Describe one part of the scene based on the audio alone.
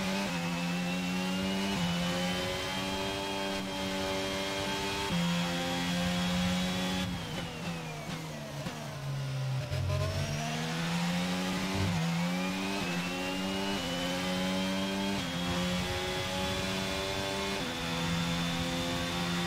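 A racing car engine screams at high revs, dropping sharply as it slows and climbing again through quick gear changes.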